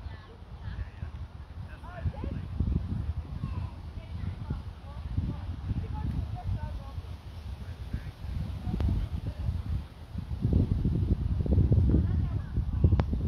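Wind rumbles and gusts across the microphone outdoors.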